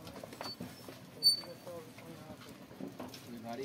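A bicycle's frame clanks as it is lifted.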